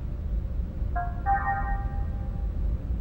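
A short electronic chime beeps.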